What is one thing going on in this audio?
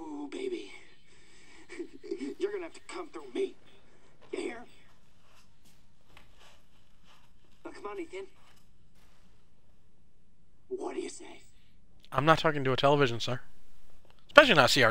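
A man speaks in a low, taunting voice through a small loudspeaker.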